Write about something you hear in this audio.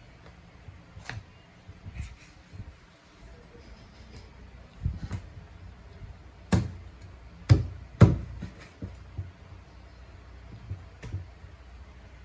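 A knife chops through raw chicken onto a plastic cutting board with sharp thuds.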